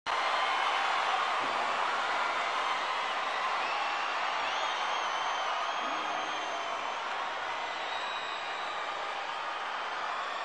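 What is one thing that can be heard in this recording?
A huge crowd cheers and roars in a large echoing arena.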